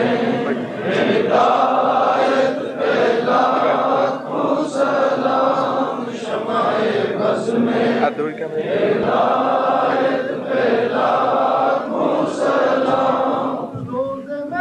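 A crowd of men chants together loudly in a rhythmic, sustained way.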